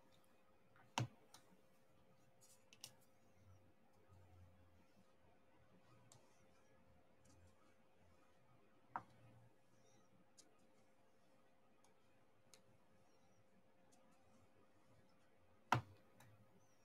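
Small plastic beads click softly as they are pressed into place.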